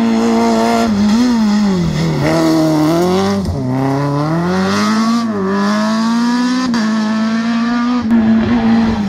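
A rally car's engine revs hard as it takes a hairpin and pulls away.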